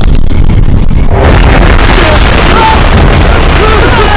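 A sandstorm roars with loud, rushing wind.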